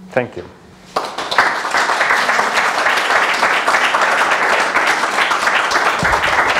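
An audience claps loudly and steadily.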